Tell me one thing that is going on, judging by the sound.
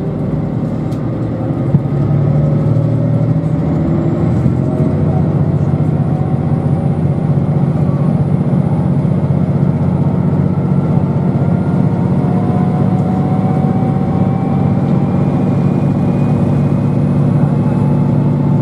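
An electric motor whines, slowly rising in pitch.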